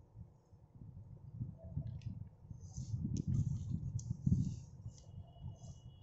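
A sheet of paper rustles as a page is flipped over and back.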